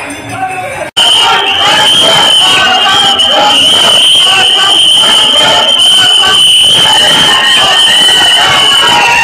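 A crowd of people shouts excitedly close by.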